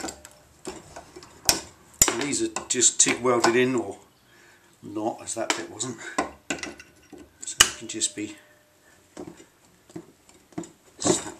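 Metal pliers clink and scrape against a metal piece held in a vise.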